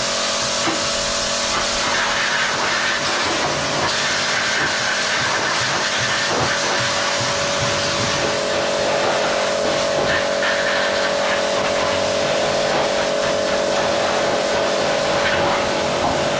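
A pressure washer sprays water hard against stone, with a loud steady hiss.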